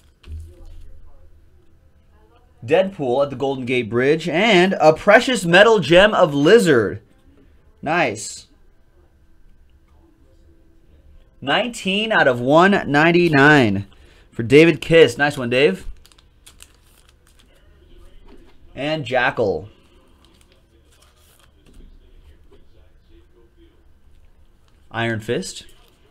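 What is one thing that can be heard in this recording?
Trading cards rustle and slide as they are handled.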